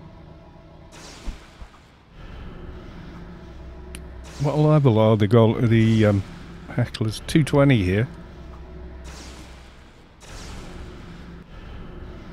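A magic spell whooshes in a game.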